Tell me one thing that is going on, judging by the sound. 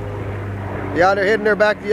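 A young child calls out excitedly nearby.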